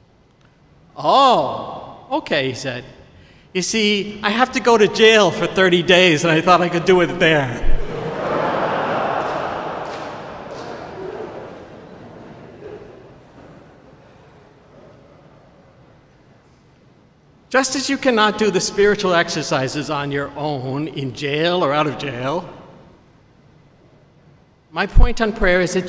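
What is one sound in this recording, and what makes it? An elderly man speaks calmly through a microphone in a large echoing hall, with pauses.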